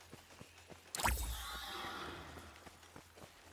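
A loud magical blast booms and rumbles away.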